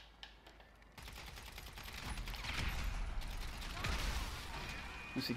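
A pistol fires several shots.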